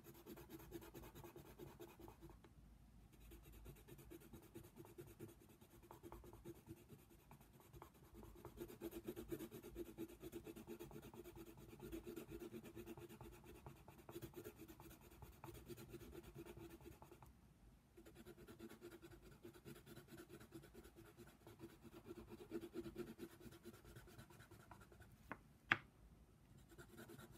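A coloured pencil scratches rapidly back and forth on paper, close up.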